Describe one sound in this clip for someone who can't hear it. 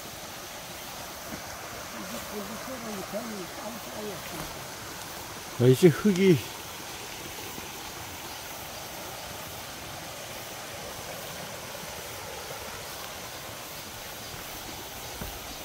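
Water trickles over stones in a small stream.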